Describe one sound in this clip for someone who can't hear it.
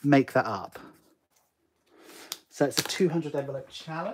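A pen clicks down onto a table.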